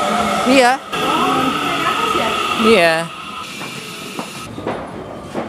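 A train rumbles and squeals along beside the platform.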